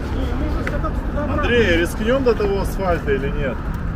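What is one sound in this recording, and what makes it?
A man talks outdoors, close by.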